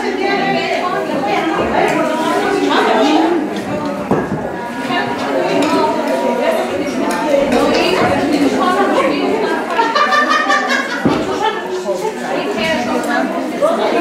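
Several women chat and call out nearby, over a murmur of voices.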